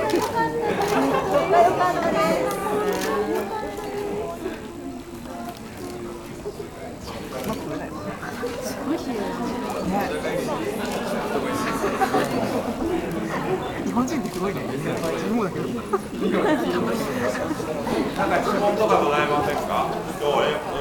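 Several men and women talk at once nearby, in a crowded room.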